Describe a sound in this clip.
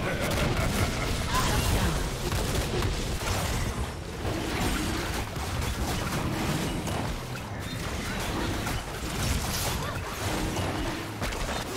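Magical blasts and clashing weapon effects sound throughout a hectic game battle.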